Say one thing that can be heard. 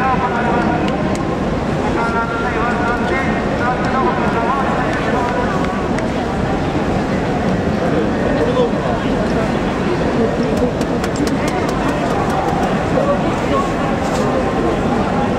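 Hands slap together in high fives.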